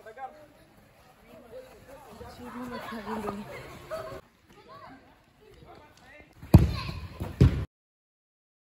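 Children shout and cheer excitedly.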